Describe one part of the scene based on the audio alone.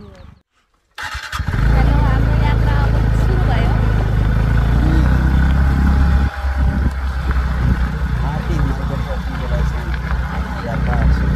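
A motorcycle engine runs steadily up close while riding.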